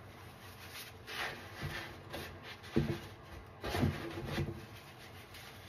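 Wet sponges squish and rub together in soapy water.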